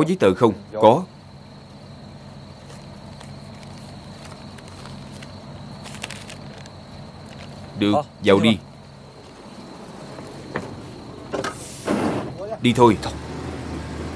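A man speaks in a low, tense voice nearby.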